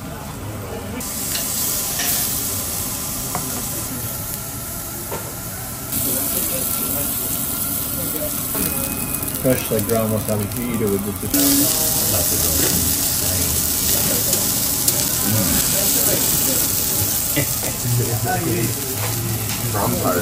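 Meat sizzles and hisses on a hot grill.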